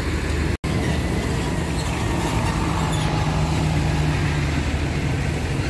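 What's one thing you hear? A truck engine hums close by.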